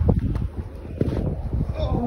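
Footsteps thud on grass.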